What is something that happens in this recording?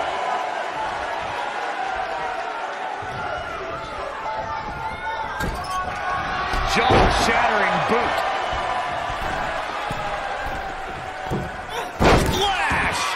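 A body slams onto a wrestling mat with a heavy thud.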